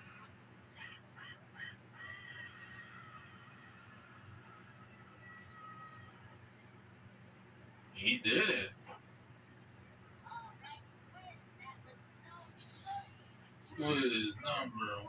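Video game sounds and music play from a television.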